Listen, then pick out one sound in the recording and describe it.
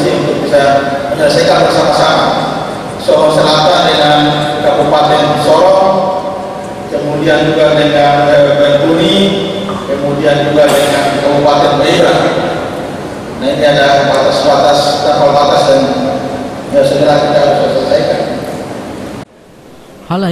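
A man gives a speech through a microphone and loudspeakers, in a large echoing hall.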